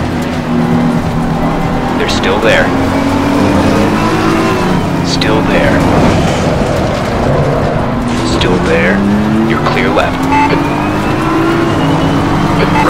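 Other racing cars roar past nearby.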